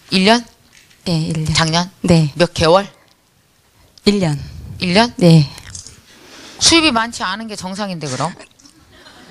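A middle-aged woman speaks with animation into a microphone, heard through a loudspeaker in a room.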